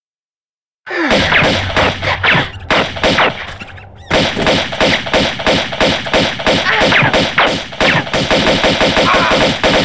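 Gunshots fire rapidly, one after another.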